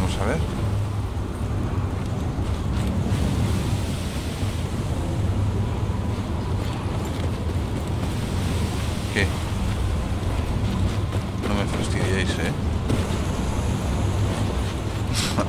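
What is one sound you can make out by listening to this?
Heavy rain patters against glass.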